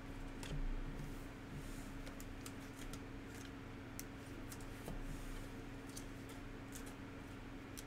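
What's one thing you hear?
Trading cards rustle and click as hands shuffle through them.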